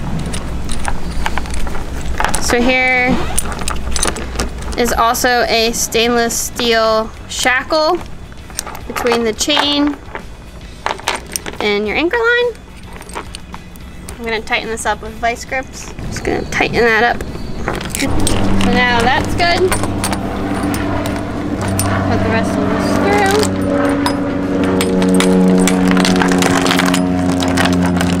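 A metal chain clinks and rattles.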